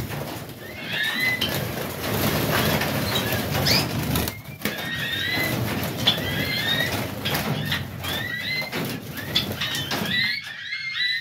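Small finches chirp and twitter throughout.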